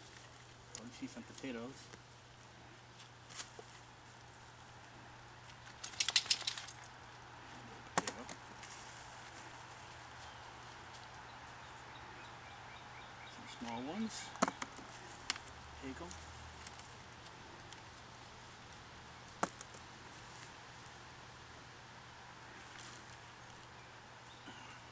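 Gloved hands rustle and scrape through soil and leafy plants.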